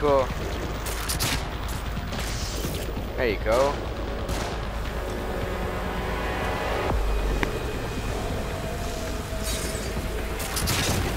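A crossbow fires a bolt with a sharp twang.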